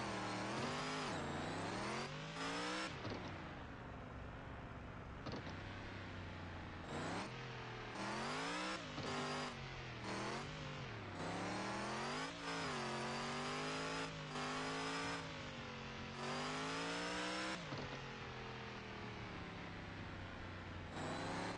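A truck engine revs up and down as it climbs over rough ground.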